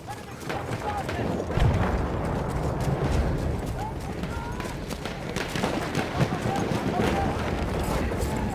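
Strong wind roars and howls steadily.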